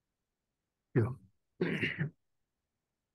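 A man speaks briefly into a microphone in a meeting room.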